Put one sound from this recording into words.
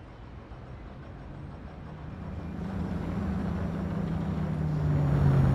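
A bus engine hums and grows louder as the bus pulls up.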